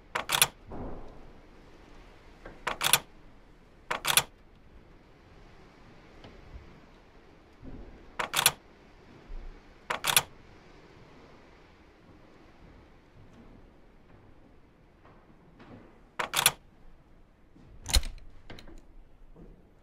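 A small crank on a music box clicks and rattles as it is turned.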